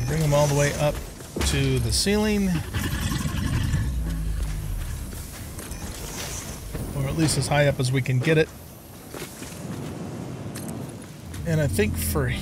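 An older man talks casually into a close microphone.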